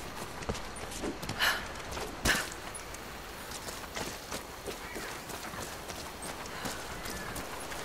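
Footsteps rustle through dry grass and brush.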